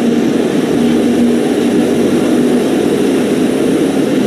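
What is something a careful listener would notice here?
An ice resurfacing machine drives by with a low engine hum.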